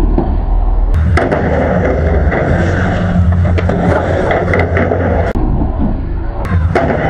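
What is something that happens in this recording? Skateboard wheels roll and rumble on a wooden ramp.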